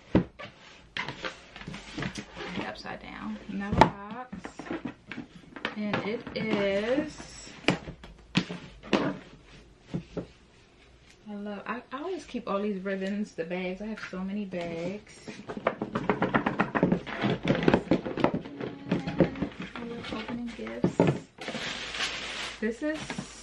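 A young woman talks casually and close to the microphone.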